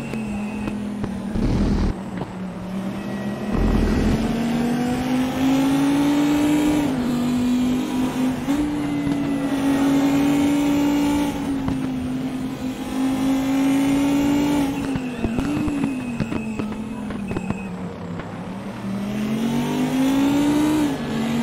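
A racing car engine roars loudly, rising and dropping in pitch as gears shift.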